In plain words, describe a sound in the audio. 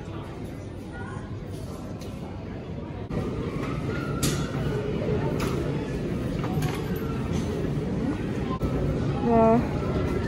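Luggage trolleys rattle and roll across a hard floor.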